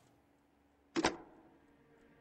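A phone receiver is lifted with a clatter.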